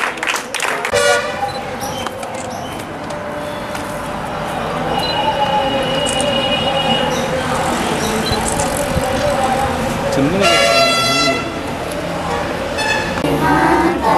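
A group of children and adults sing together outdoors.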